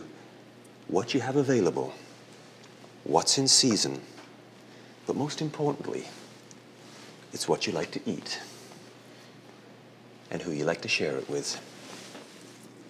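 A man talks calmly into a microphone in short phrases.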